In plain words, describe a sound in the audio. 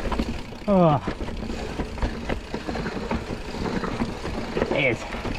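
A bicycle rattles and clatters over roots and stones.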